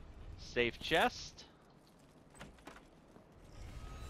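A heavy wooden chest creaks open.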